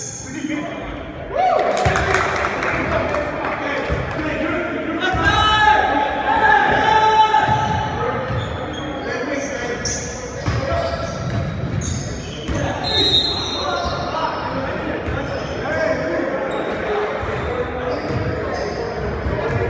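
Players' sneakers squeak on a gym floor in a large echoing hall.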